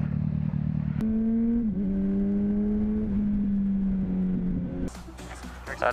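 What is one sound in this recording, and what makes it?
A motorcycle engine revs and whines at speed.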